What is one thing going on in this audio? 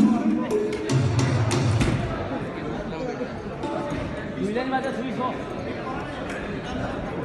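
Tabla drums are played with quick strokes.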